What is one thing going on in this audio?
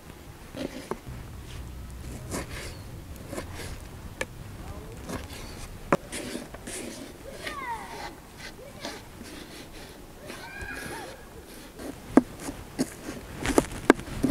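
A knife chops on a wooden board with sharp taps.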